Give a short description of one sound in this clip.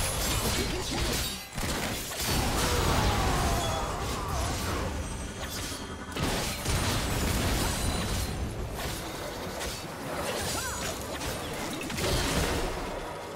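Spell effects crackle and burst in a fast battle.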